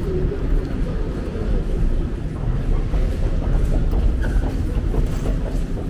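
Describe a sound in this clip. An escalator rumbles steadily.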